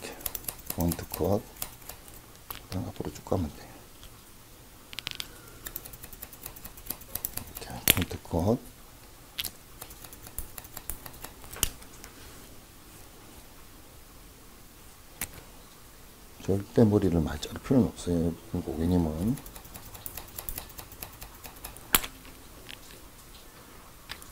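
Scissors snip through hair in quick bursts.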